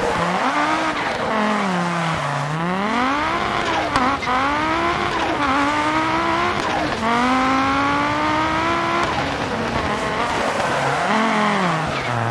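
A racing car engine revs hard, rising and falling through gear changes.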